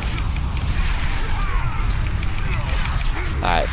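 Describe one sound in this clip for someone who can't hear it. Fiery magic spells whoosh and crackle in combat.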